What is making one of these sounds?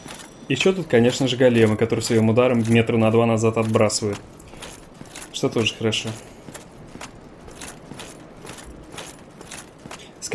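Armoured footsteps crunch on rocky ground.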